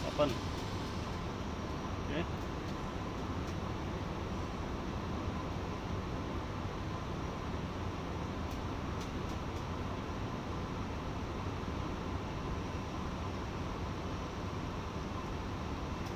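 Metal test probes click against wire connectors.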